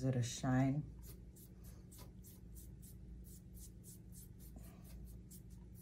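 A paintbrush brushes softly across foam in quick strokes.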